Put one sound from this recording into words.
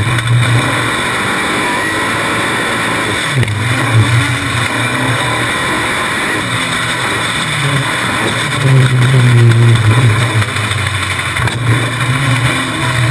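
An off-road racing buggy's engine roars loudly up close, revving up and down.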